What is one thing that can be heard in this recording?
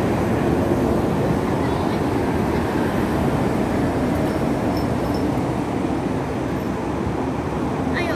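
Vehicle engines rumble steadily close by.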